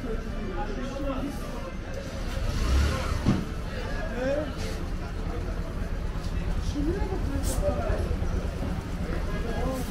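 A motor scooter engine hums close by as it rides slowly.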